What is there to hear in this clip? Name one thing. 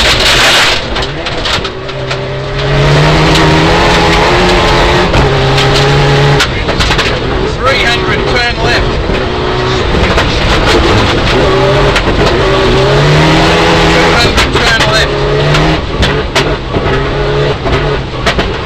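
Gravel and stones rattle and clatter against the underside of the car.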